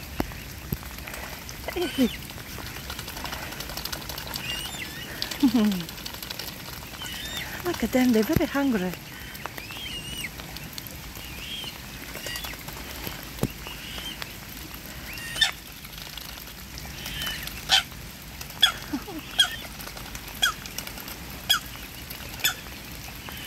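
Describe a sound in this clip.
Cygnets peep softly and repeatedly close by.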